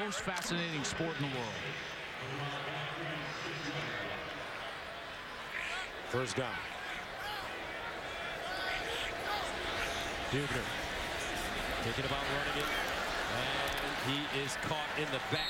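A large crowd roars steadily in a big open stadium.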